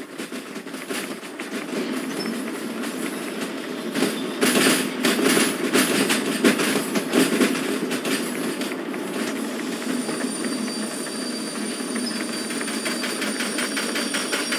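A steam locomotive hisses and rumbles steadily up close.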